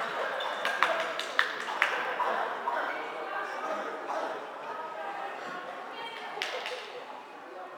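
Floorball sticks click against a plastic ball in a large echoing hall.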